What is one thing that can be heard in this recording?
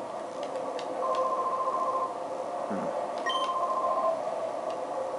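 A game gives short, even electronic beeps.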